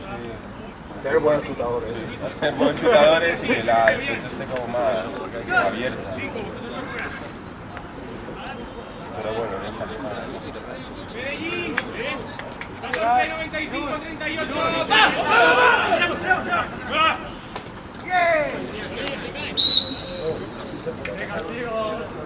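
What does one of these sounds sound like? Young men shout calls to each other across an open field, some distance away.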